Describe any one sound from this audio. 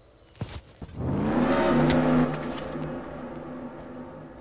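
A motorcycle engine revs as it pulls away.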